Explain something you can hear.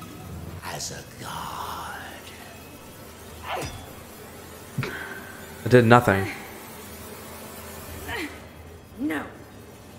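A young man talks quietly, close to a microphone.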